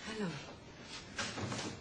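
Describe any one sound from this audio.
A young woman speaks with a smile.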